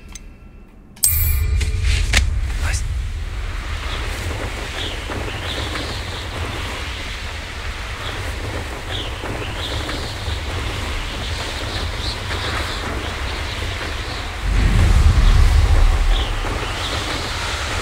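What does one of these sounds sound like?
Wind rushes steadily past while flying.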